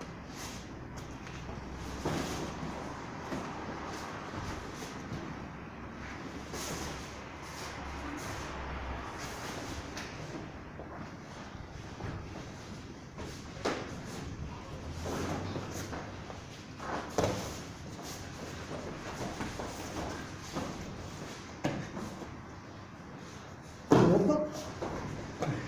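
Bodies thump and shuffle on floor mats as people grapple.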